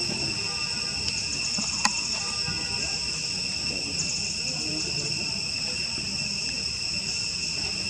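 A baby monkey squeaks and whimpers close by.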